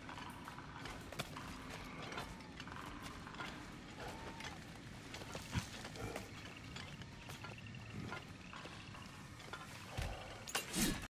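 Footsteps crunch and rustle through undergrowth.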